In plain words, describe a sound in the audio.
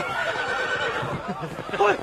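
A middle-aged man laughs loudly close by.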